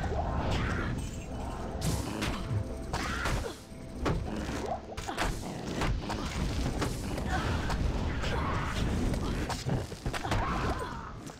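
Magic blasts and explosions crackle in quick succession.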